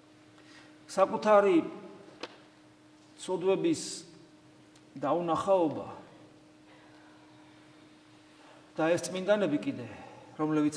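A man speaks slowly and deliberately into a microphone, with long pauses, in an echoing room.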